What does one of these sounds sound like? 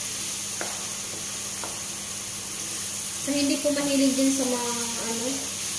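Ground meat sizzles in a frying pan.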